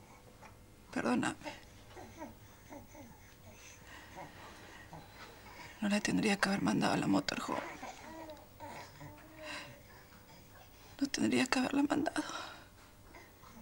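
A woman speaks quietly and emotionally, close by, in short bursts.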